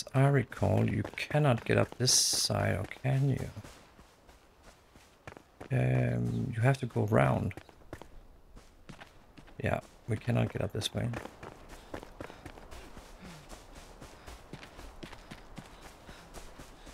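Footsteps run quickly over stone and grass.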